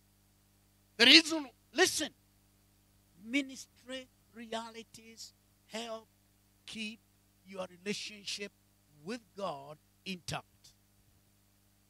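A man speaks with animation through a microphone and loudspeakers in a large hall.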